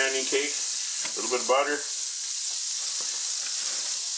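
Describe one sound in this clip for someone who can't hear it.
A patty drops into the frying pan with a soft slap.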